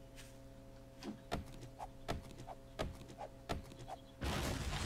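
A stone axe chops into a tree trunk with sharp knocks.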